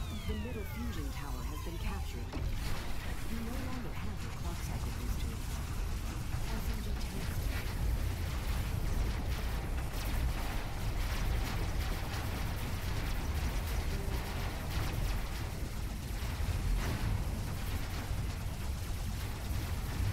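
A robot walks with heavy metallic footsteps.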